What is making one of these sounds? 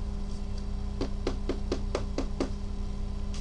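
Plastic crinkles and clicks as hands handle a card case.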